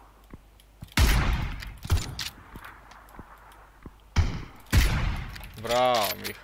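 Loud rifle shots boom and echo.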